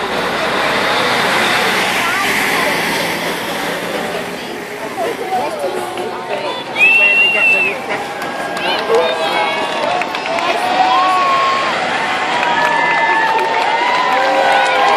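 A crowd of spectators cheers and shouts along the roadside.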